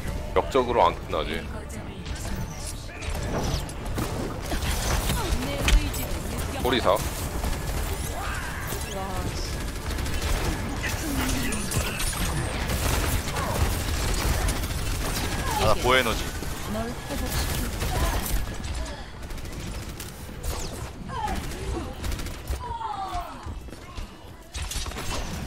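Energy weapons fire in rapid bursts with sharp zaps and impacts.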